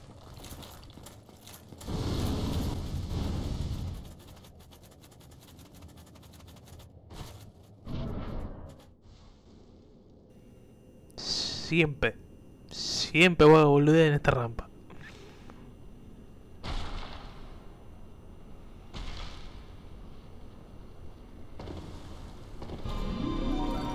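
Footsteps thud on stone floors.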